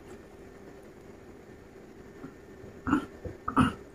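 A man sips a drink and swallows close by.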